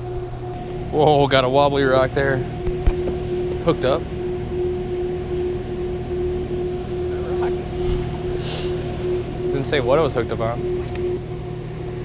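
A man talks nearby, outdoors.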